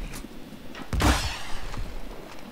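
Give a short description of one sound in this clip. A smoke grenade bursts with a sharp pop and hiss.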